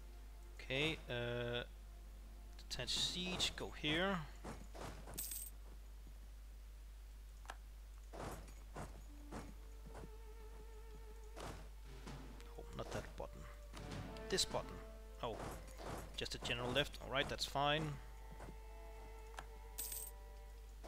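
Short clicks and chimes from a game interface sound now and then.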